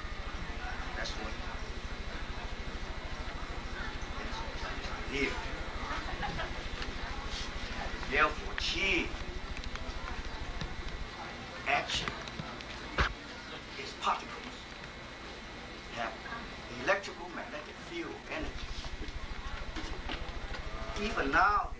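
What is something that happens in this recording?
A middle-aged man speaks calmly, as if lecturing.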